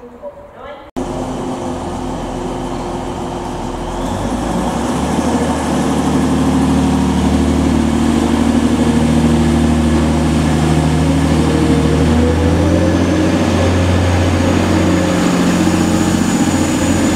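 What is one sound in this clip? A diesel train engine rumbles and grows louder as the train pulls away.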